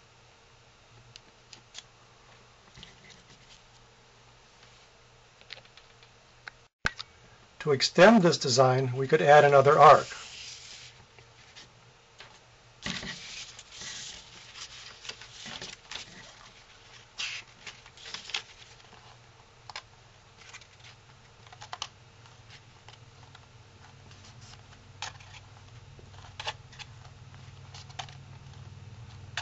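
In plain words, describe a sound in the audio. Paper rustles and crinkles as hands fold and bend it.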